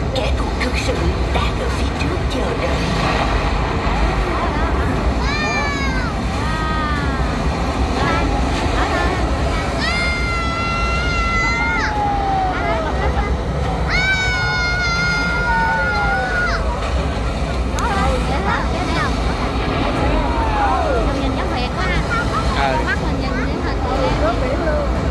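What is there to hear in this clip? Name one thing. Water fountains spray and hiss steadily.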